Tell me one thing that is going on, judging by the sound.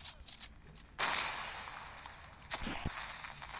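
A smoke grenade bursts with a loud hiss.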